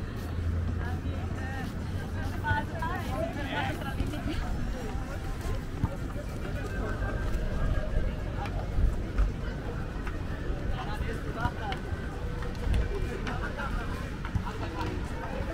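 Many people chatter and call out at a distance outdoors.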